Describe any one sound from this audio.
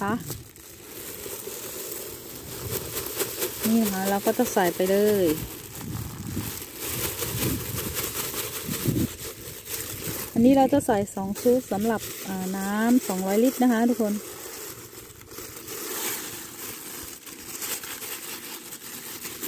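Small pellets pour and patter into water.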